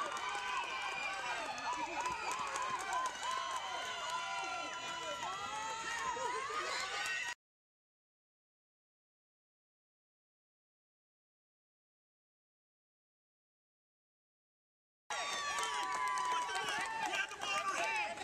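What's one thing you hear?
Young girls shout and cheer outdoors.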